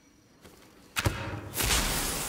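A flare ignites with a sharp burst.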